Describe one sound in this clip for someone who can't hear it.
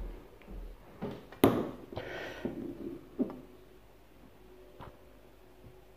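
Small objects knock and bump on a wooden board close by.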